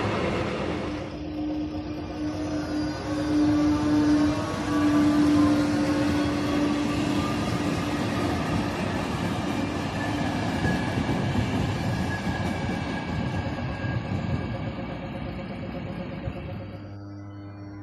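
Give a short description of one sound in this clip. An electric locomotive hauls passenger coaches past on the rails.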